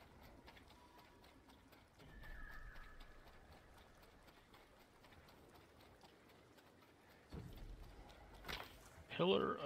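Footsteps run through tall grass.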